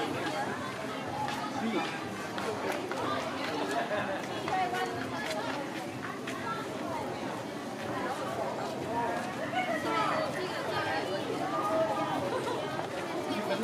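A crowd of people chatter nearby and all around, outdoors.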